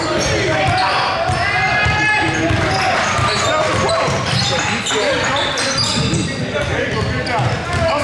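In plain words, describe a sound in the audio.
Players and spectators shout and call out in a large echoing gym.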